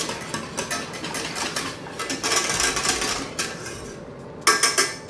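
A wire whisk rattles quickly against the inside of a metal pan.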